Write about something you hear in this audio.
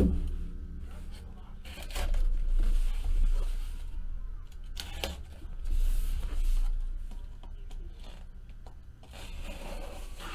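A knife slices through packing tape on a cardboard box.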